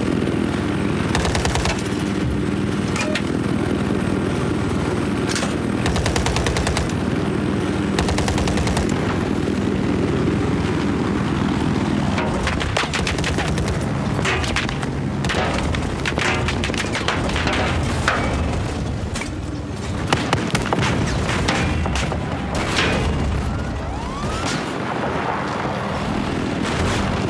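A helicopter's rotor thumps steadily and loudly.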